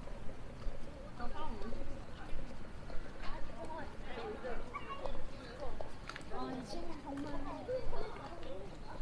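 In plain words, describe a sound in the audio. Young women chat nearby outdoors.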